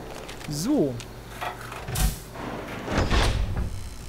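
A heavy metal hatch clanks open.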